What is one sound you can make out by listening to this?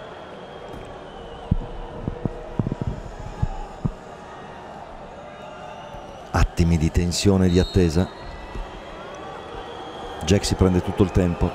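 A large stadium crowd murmurs steadily in the open air.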